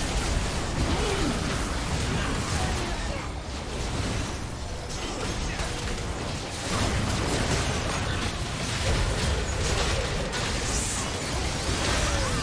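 Fantasy battle sound effects of spells and weapon clashes crackle and boom.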